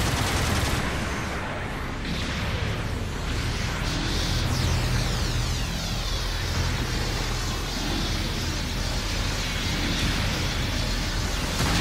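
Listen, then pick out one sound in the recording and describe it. Beam rifles fire with sharp zaps.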